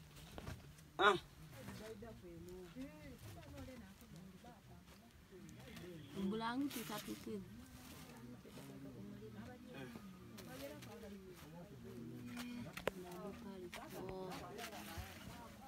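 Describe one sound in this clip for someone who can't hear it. A blanket rustles as it is spread over a person.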